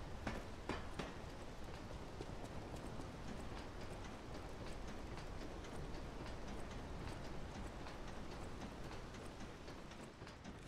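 Footsteps run quickly on stone.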